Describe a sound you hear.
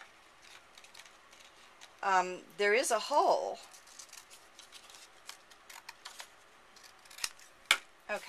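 Scissors snip through card.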